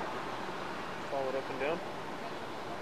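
A person speaks briefly nearby.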